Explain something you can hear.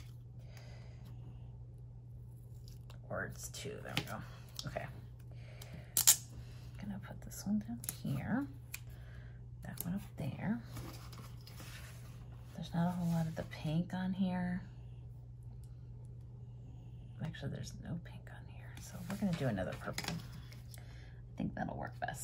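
Paper rustles and crinkles as sticky tape and stickers are peeled and pressed down.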